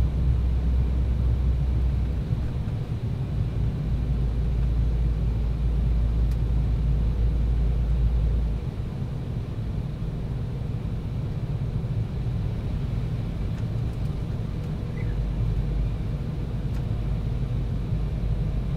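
Jet engines roar with a steady, deep rumble inside an airliner cabin.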